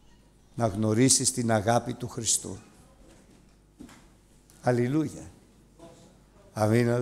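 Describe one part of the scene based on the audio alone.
An older man speaks loudly and with animation in a large hall.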